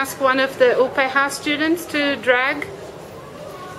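Young girls speak loudly in high, sing-song voices close by.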